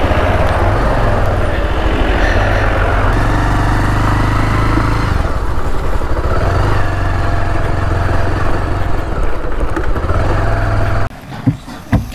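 A motorcycle engine rumbles steadily while riding over a rough road.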